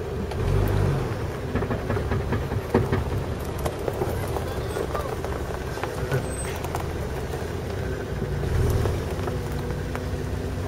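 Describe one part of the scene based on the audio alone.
Tyres crunch and roll over loose dirt and stones.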